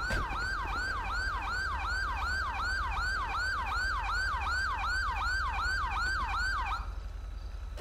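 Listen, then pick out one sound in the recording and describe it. A police siren wails rapidly nearby.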